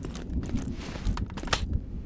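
A gun is reloaded with a click.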